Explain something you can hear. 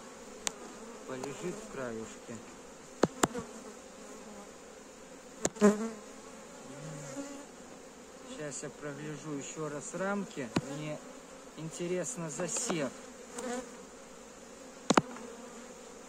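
Wooden hive frames knock and clatter.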